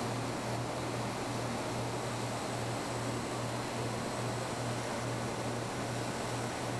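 A milling machine whirs steadily as it cuts metal.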